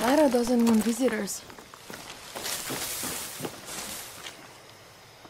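Leaves and branches rustle as someone pushes through thick brush.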